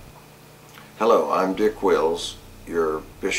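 An older man speaks calmly and clearly, close by.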